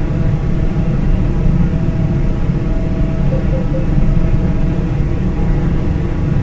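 A car engine hums steadily while driving along a road.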